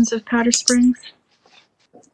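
A woman speaks briefly over an online call.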